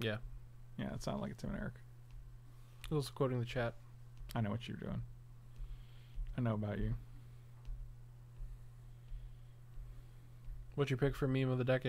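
A man talks casually and close into a microphone, in short bursts with pauses.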